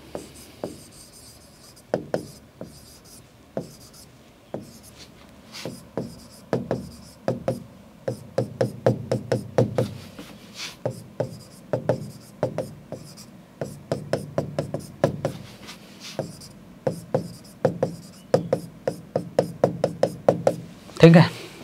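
A stylus taps and scratches on a hard board.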